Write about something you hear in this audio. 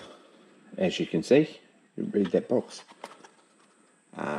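A cardboard box is handled and its lid slides open.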